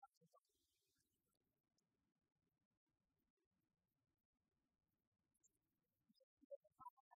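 A small group claps politely in a large echoing hall.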